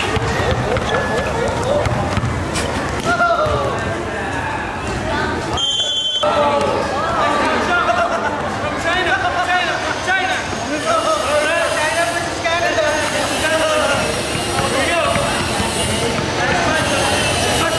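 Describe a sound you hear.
A crowd of boys and young men shout and cheer outdoors.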